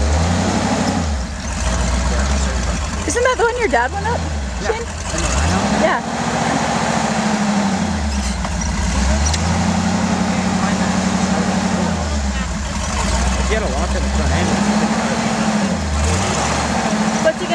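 A pickup truck's engine revs in repeated bursts while it crawls through deep snow.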